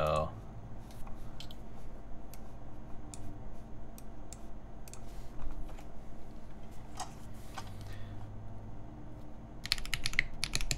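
Keys on a mechanical keyboard are pressed slowly, one at a time.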